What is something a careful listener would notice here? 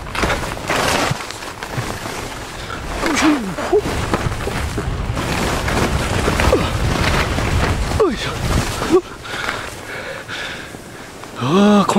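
Skis hiss and swish through powder snow.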